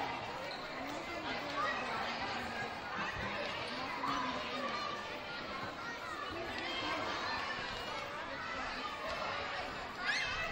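A crowd of children and adults chatters and calls out in a large echoing gym.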